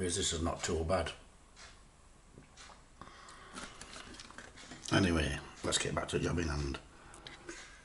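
A middle-aged man talks calmly close by.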